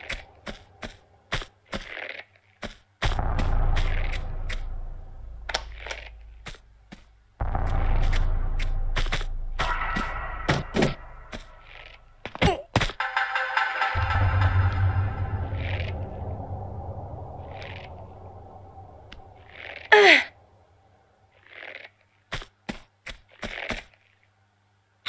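Footsteps tap quickly on a wooden floor.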